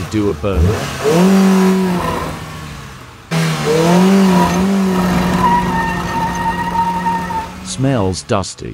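A car engine revs hard as tyres spin on the spot.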